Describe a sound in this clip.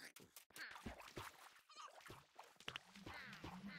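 Water splashes as a swimmer paddles.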